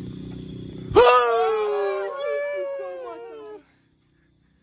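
A boy shouts excitedly close by.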